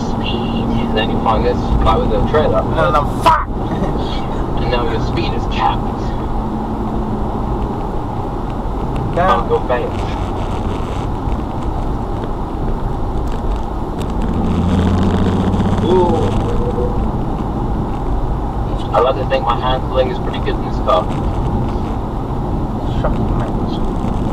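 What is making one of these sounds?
A car engine hums steadily while driving along.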